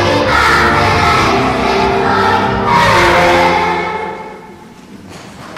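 A children's choir sings in an echoing hall and the song fades out.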